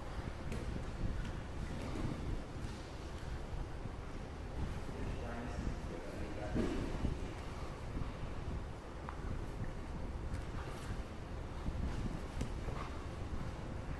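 Bodies shuffle and thump on padded mats.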